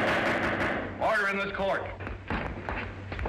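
An elderly man speaks sternly.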